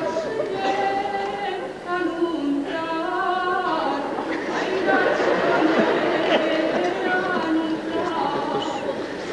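A choir of children sings together in a large hall.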